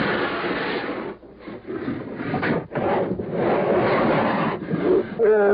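A bear growls and snarls loudly, close by.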